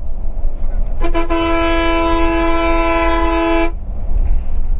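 A loud bus horn blares in one long steady blast.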